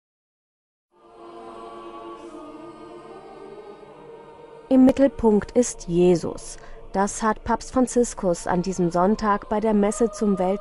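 A choir sings slowly in a large echoing hall.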